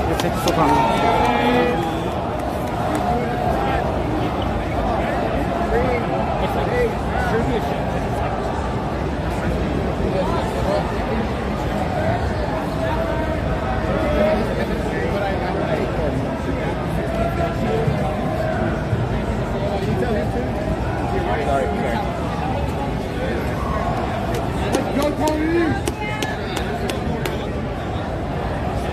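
A crowd of people chatters throughout a large, busy hall.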